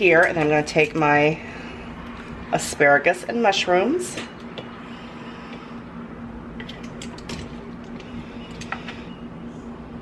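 Metal tongs clack and scrape in a frying pan.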